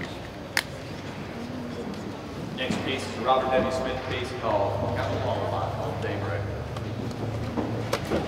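A man speaks calmly to an audience in a large echoing hall.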